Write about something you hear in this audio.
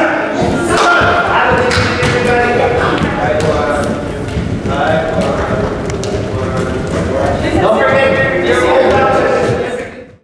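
Bare feet thump and patter on a wooden floor.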